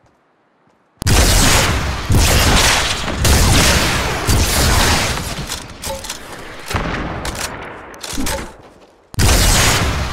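A rocket launcher fires with loud booming blasts.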